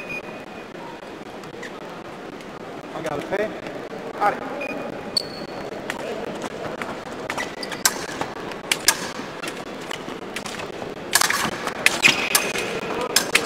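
Fencers' shoes squeak and thud on the piste.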